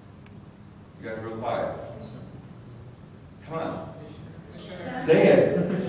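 A middle-aged man speaks with animation into a microphone in a room with some echo.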